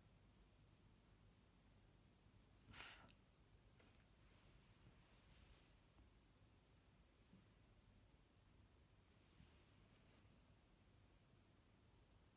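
A sponge applicator brushes softly across paper.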